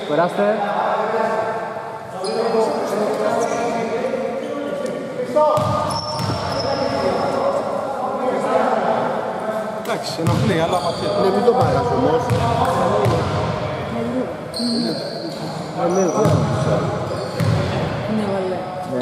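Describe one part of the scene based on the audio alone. A basketball bounces with hollow thuds in an echoing hall.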